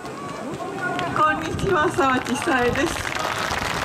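A woman speaks into a microphone, heard through loudspeakers.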